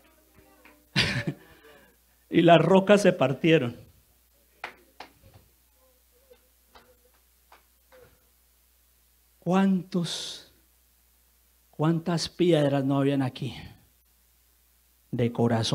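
A man speaks with animation into a microphone, in bursts with pauses.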